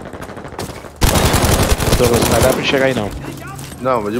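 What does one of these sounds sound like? A submachine gun fires rapid bursts up close.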